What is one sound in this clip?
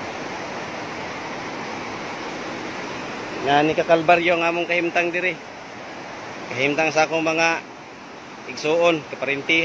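Water flows over river stones.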